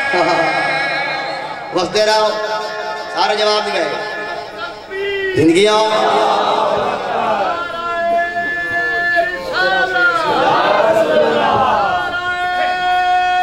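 A young man chants loudly and with emotion into a microphone, heard through loudspeakers in an echoing hall.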